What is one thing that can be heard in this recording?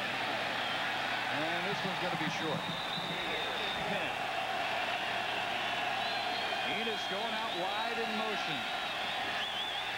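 A large stadium crowd cheers and murmurs steadily.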